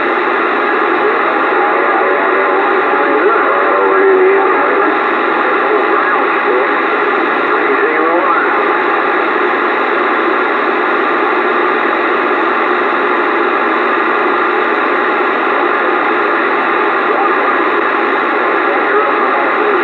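Radio static hisses and crackles steadily from a loudspeaker.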